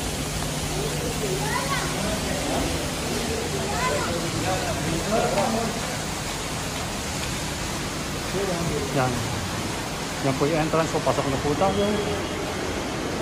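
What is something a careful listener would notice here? A man talks nearby in short phrases.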